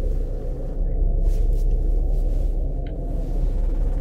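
Bare feet step softly on the ground.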